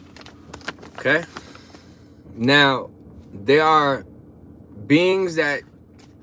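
A young man speaks up close with animation.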